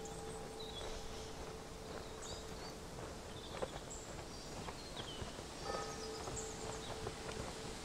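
Footsteps crunch on a dirt path outdoors.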